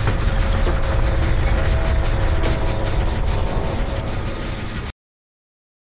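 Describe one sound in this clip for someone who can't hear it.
A generator engine rumbles and clatters steadily.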